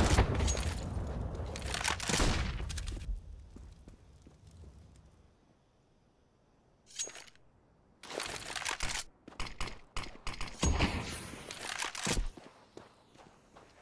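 Footsteps run quickly on stone.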